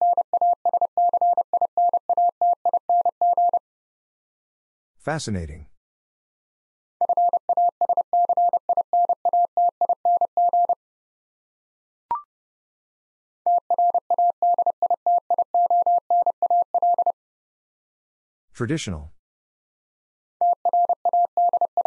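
A telegraph key beeps out Morse code in fast, steady bursts of tone.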